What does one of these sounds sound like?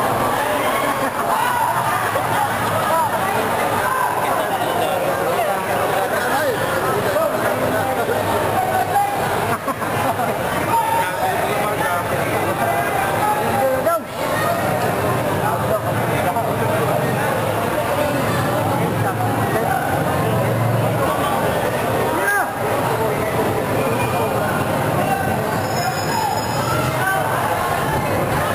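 A large crowd cheers and shouts loudly throughout.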